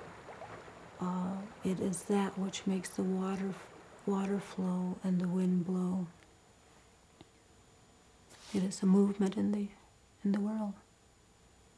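A middle-aged woman speaks close by, slowly and with emotion.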